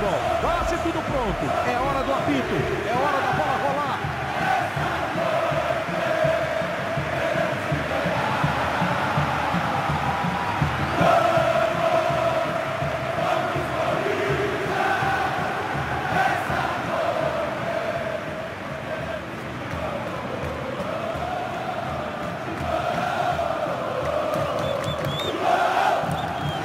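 A large stadium crowd sings and chants loudly throughout.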